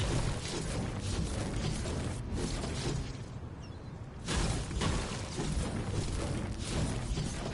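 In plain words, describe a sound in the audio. A tool strikes a wall with repeated hard knocks.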